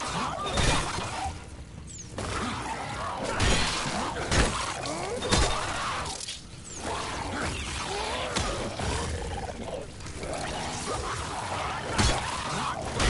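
Heavy blows thud and smack in a struggle.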